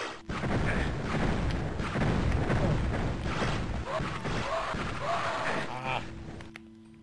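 Loud video game blasts and shots crash repeatedly.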